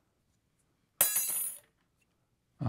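Paper rustles as small cut pieces are handled.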